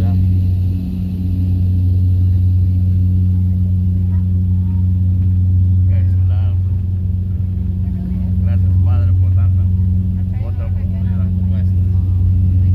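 A propeller plane's engines drone steadily from inside the cabin.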